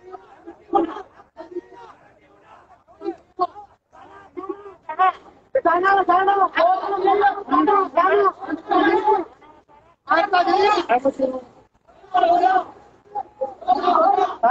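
A crowd of men murmurs and talks in the background.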